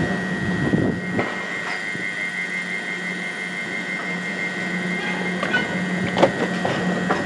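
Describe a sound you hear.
A door warning beeps rapidly.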